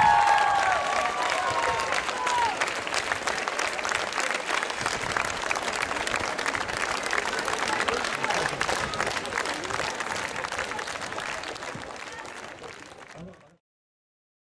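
A large crowd cheers and claps outdoors.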